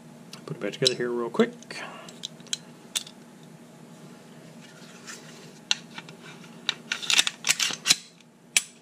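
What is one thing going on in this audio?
Metal parts click and clack as they are handled.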